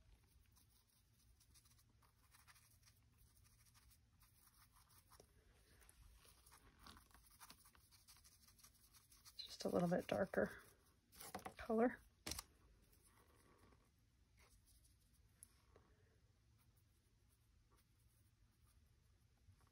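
A paintbrush strokes and dabs softly on paper.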